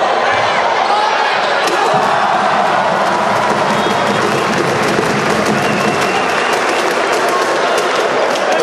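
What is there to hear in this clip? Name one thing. A crowd murmurs and cheers steadily in a large echoing hall.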